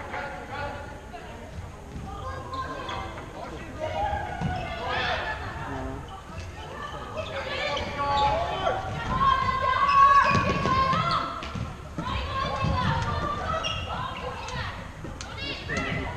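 Men's voices murmur and call out across a large echoing sports hall.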